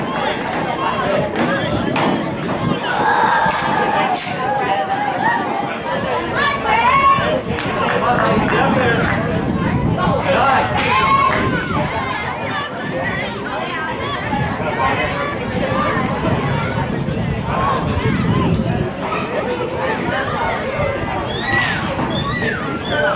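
Young women call out to one another on the field.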